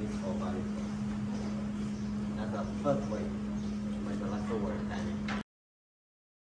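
A man speaks calmly to a group at a short distance.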